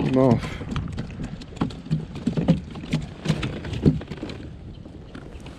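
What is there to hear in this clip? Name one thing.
Water laps softly against a kayak hull.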